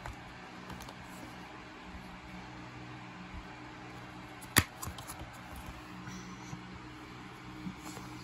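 Plastic crinkles and taps as a case is handled.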